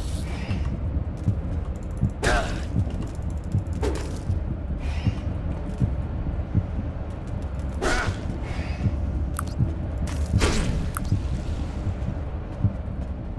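Footsteps thud steadily on a metal floor.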